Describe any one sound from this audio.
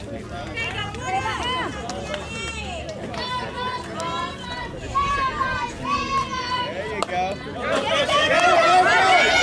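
Young girls shout and cheer loudly outdoors.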